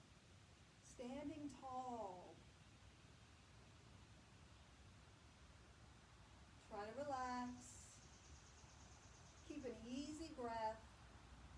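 A young woman speaks calmly and clearly nearby.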